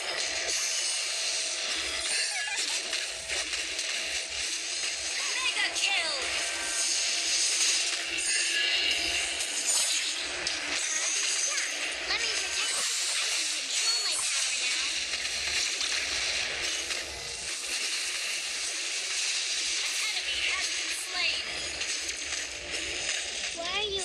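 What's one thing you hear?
Game spell effects crackle, whoosh and clash in a rapid, busy battle.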